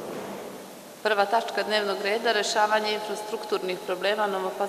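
A woman speaks steadily into a microphone, heard over loudspeakers in a large room.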